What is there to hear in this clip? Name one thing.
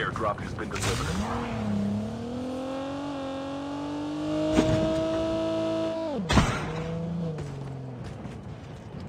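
A vehicle engine revs and hums, rising and falling in pitch.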